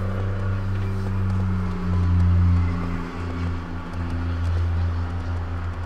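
A horse's hooves thud slowly on soft ground.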